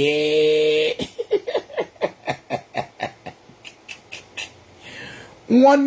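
An older man laughs heartily.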